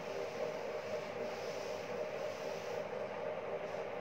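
A blackboard is wiped with a duster, rubbing softly.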